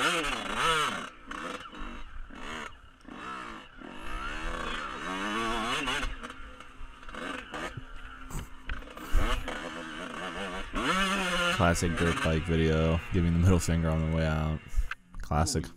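A dirt bike engine revs and roars.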